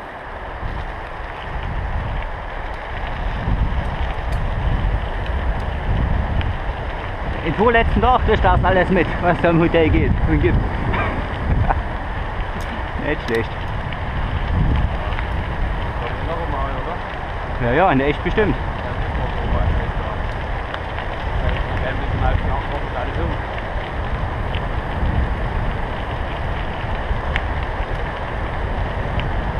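Tyres crunch and rumble steadily over gravel.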